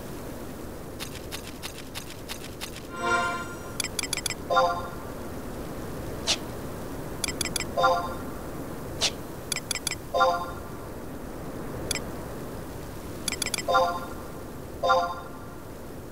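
Short electronic menu blips and chimes sound in quick bursts.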